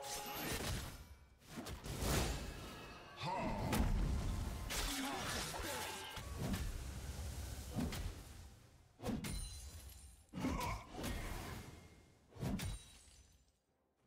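Game characters clash with sharp hits.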